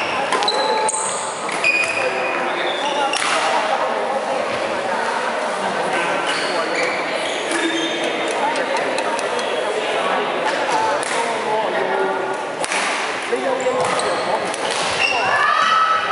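Badminton rackets strike shuttlecocks with sharp pops.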